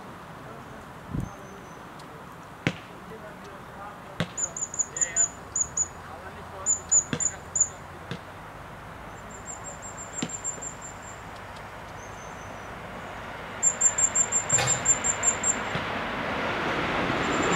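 A squirrel gnaws and nibbles at a nut close by.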